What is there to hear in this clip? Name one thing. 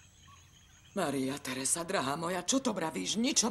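A young woman speaks with feeling, close by.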